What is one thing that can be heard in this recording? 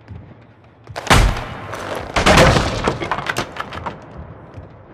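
Wooden boards crash and splinter as something is smashed.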